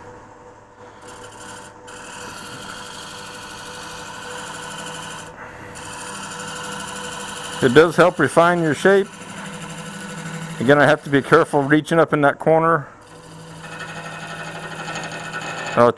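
A cutting tool scrapes and shaves spinning wood.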